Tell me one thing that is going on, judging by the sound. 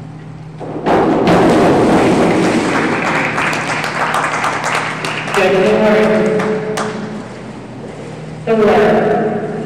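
A crowd cheers and applauds in an echoing hall.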